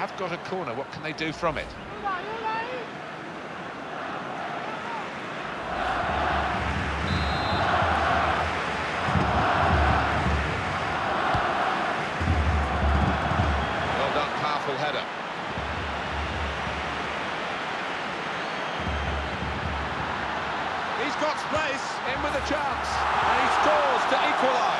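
A large stadium crowd cheers and roars, swelling and falling.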